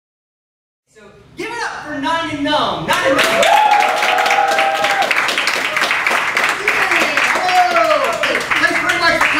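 A crowd cheers and whoops.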